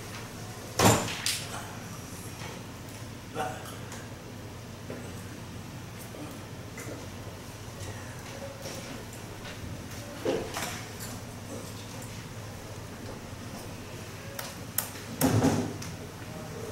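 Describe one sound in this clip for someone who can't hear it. Hands tap and clap softly together.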